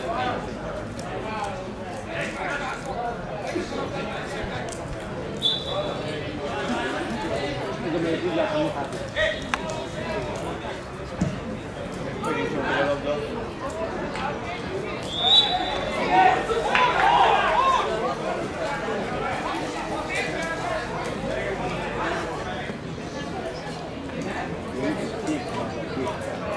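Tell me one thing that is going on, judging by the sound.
Adult men shout and call to each other outdoors.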